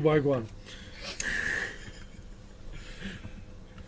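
Men laugh together.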